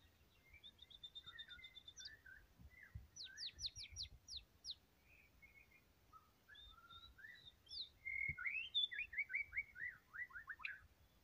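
A bird sings a varied song of quick whistles, trills and sweeping chirps.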